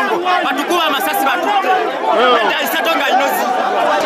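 A man speaks loudly and excitedly close by.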